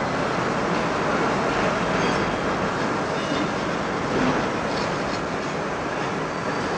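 Factory machines whir and clatter steadily in a large hall.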